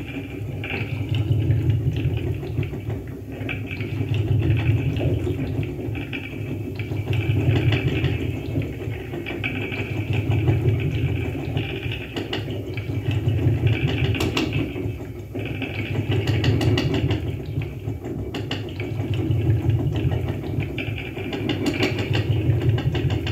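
A deep electronic drone pulses from a loudspeaker, swelling and fading in slow waves.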